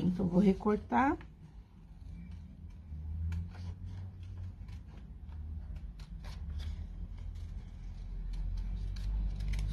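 Scissors snip through thin card close by.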